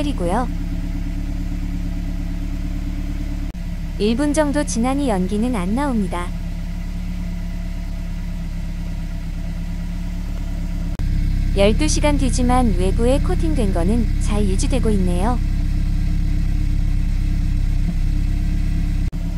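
A car engine idles with a steady low rumble from the exhaust.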